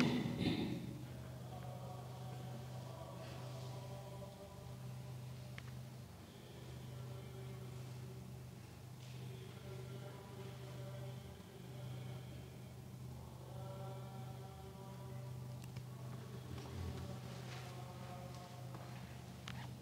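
A group of men sings a slow chant together in an echoing stone hall.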